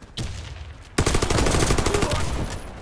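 A rifle fires in rapid bursts close by.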